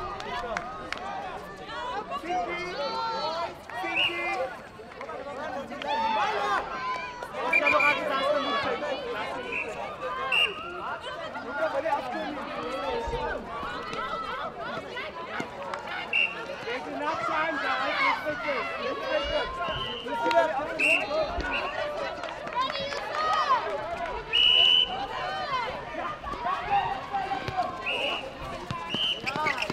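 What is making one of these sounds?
Young men and women shout and call out excitedly outdoors.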